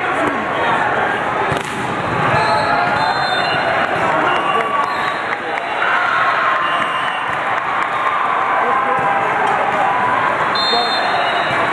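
Many voices of young men chatter throughout a large echoing hall.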